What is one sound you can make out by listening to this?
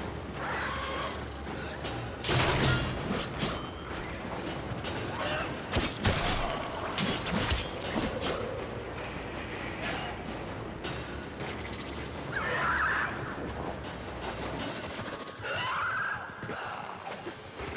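Blades whoosh and slash through the air.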